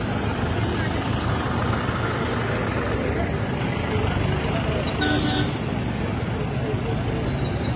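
Motorcycles and cars drive past on a busy road.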